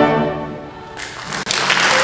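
A large choir sings a held final chord in a resonant hall.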